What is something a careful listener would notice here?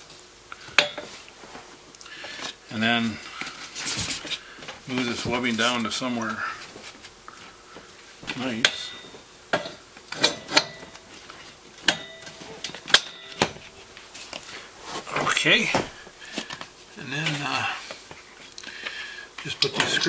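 Metal latches click and clank on a folding table.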